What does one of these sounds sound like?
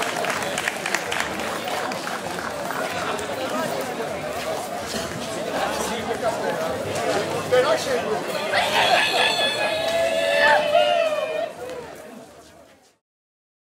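A small band plays music.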